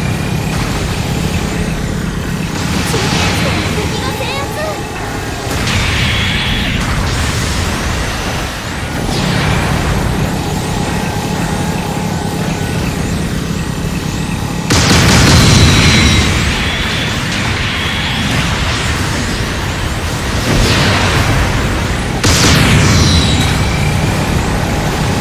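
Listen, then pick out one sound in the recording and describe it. Jet thrusters roar and whoosh in swelling bursts.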